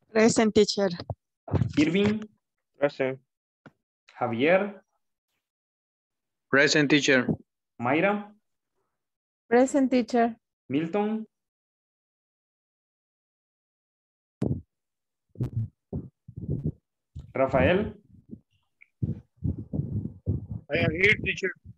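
A man speaks through an online call, with pauses.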